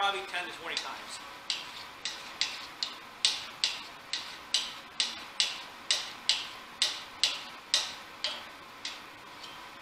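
A blade scrapes along wood in quick, even strokes.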